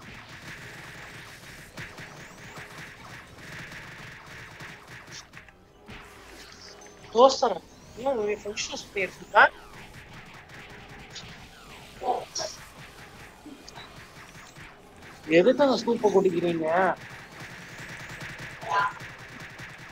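Fantasy game spell effects crackle and chime.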